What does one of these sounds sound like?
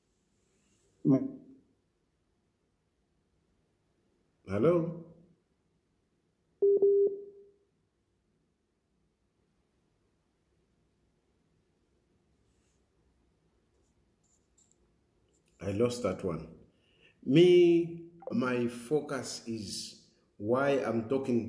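A man speaks close to the microphone, slowly and with long pauses.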